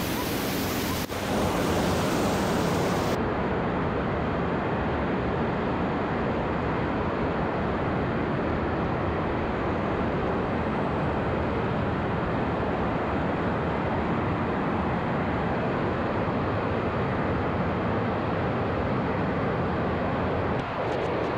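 Rushing water roars loudly through a narrow rock gorge.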